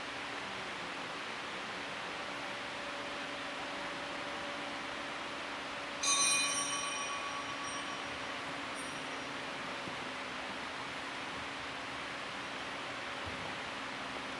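A man speaks quietly at a distance in a large echoing hall.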